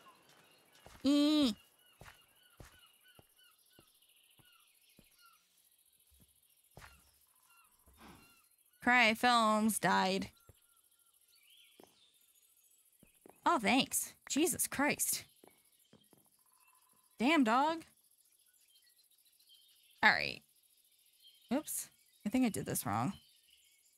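A young woman speaks with animation, close to a microphone, in short bursts.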